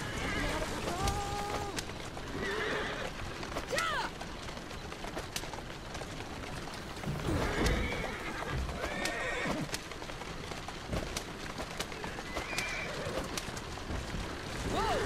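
Horse hooves clatter on cobblestones.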